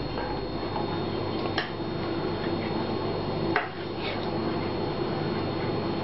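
A spoon scoops rice into a glass bowl with soft clinks.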